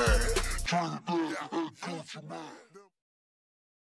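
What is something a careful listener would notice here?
A man raps in a slowed, deep voice.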